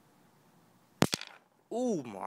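A stone is set down on concrete with a knock.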